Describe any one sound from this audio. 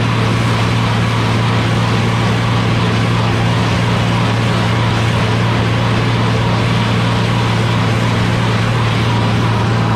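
A mower clatters as it cuts grass.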